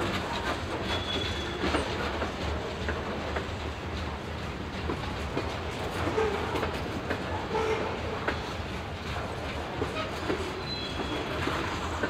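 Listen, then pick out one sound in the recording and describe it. Wheels squeal faintly against the rails.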